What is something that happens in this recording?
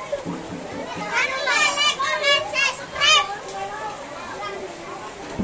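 Children shout and chatter excitedly close by.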